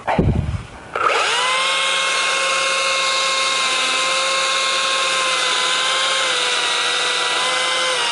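A chainsaw engine sputters to life and idles steadily and loudly.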